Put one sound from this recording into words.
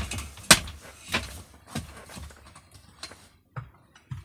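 A hand tool knocks and clicks sharply against wood overhead.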